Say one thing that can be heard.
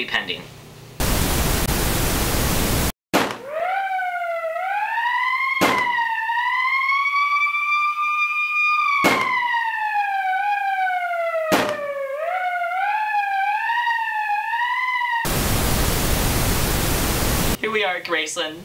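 Loud static hisses steadily.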